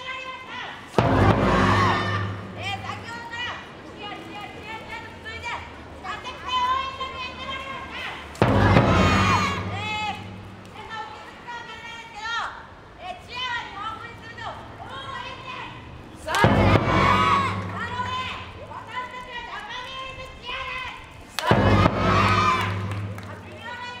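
A large bass drum booms a few times.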